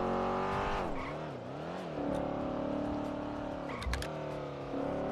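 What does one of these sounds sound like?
A car engine hums steadily, its pitch dropping and climbing again as it changes gear.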